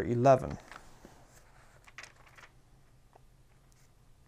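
Book pages rustle as they are turned.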